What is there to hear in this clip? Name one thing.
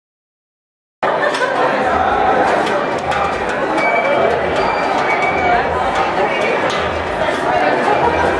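A large indoor crowd chatters loudly in an echoing hall.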